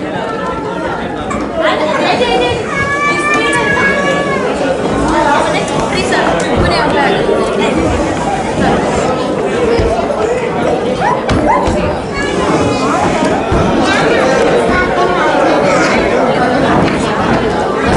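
A large crowd chatters loudly all around in an echoing hall.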